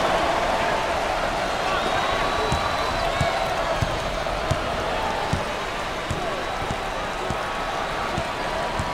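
A large crowd cheers and murmurs in an arena.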